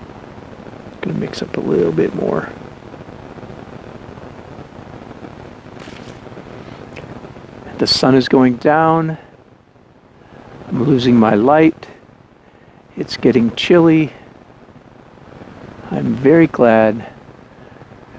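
A man talks calmly and close by, in short phrases with pauses.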